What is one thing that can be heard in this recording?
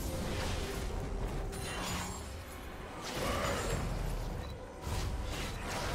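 Video game spell effects whoosh and crackle.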